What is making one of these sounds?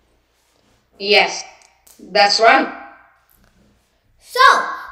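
A boy speaks slowly and clearly over an online call.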